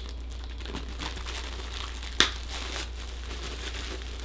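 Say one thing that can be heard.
A paper bag crinkles and rustles as it is handled.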